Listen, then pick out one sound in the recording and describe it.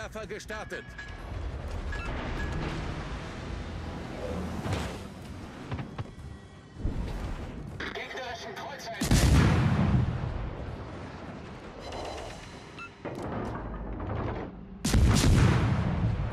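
Naval guns fire with deep booming blasts.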